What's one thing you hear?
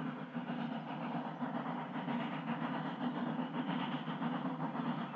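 A steam locomotive chuffs rapidly as it pulls along the track.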